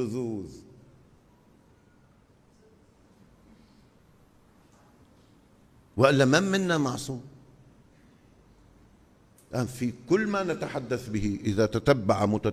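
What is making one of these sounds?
An older man speaks with animation into a microphone, with long pauses between phrases.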